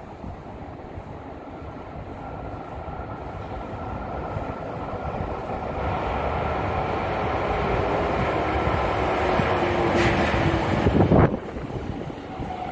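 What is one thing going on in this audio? A train approaches through an echoing underground tunnel, its roar growing louder.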